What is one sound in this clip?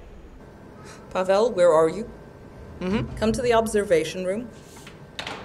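A middle-aged woman speaks urgently into a telephone.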